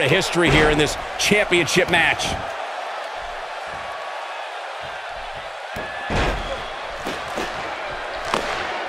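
A large arena crowd cheers and murmurs.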